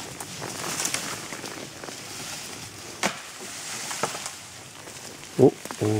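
Branches and twigs snap and crack as a horse pushes through undergrowth.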